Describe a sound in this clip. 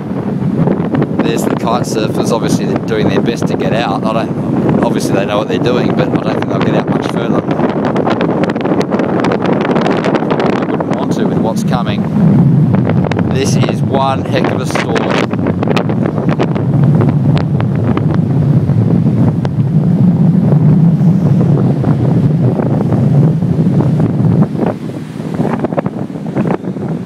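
Strong wind blows, rumbling outdoors.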